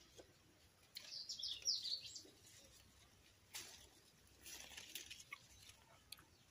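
Leaves rustle as a branch is pulled.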